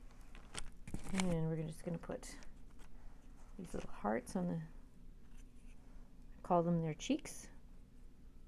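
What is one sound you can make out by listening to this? A woman speaks briefly and calmly close by.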